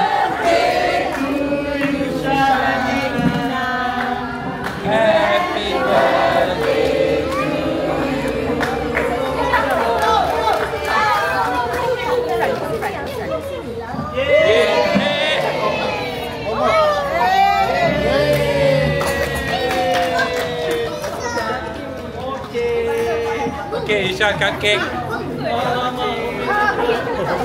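A crowd of adults and children chatter and call out close by.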